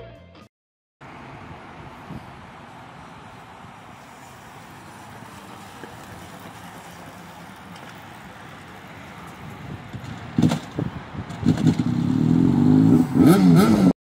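A motorcycle engine runs nearby.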